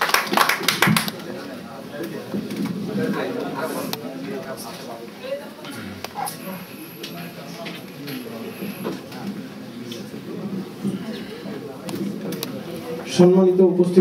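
A man speaks steadily into a microphone, heard through a loudspeaker in an echoing hall.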